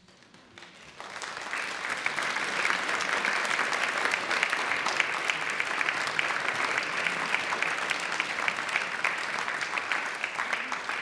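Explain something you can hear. A large crowd applauds loudly in a big echoing hall.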